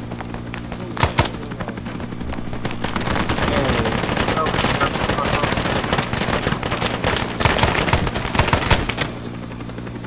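A rifle fires sharp, loud shots in bursts.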